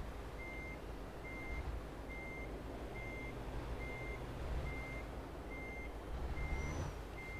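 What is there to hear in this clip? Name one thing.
A truck engine rumbles low and steadily.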